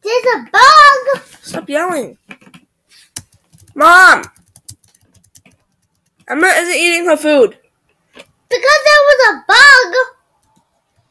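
A boy talks with animation into a nearby microphone.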